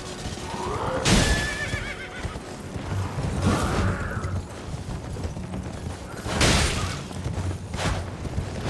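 Swords swing and clash in sharp, sudden strikes.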